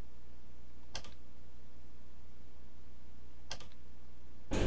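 An elevator button clicks twice.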